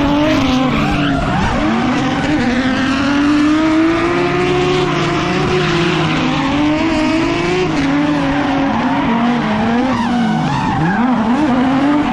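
Cars drive along a road with engines humming.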